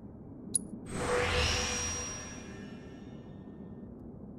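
A bright shimmering whoosh swells and then fades away.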